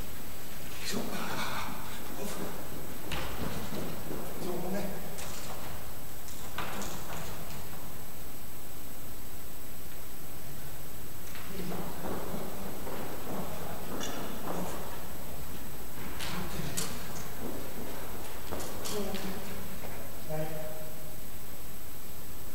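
A woman calls out from a distance in a large echoing hall.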